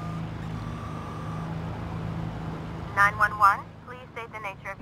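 A car engine idles with a low, steady hum.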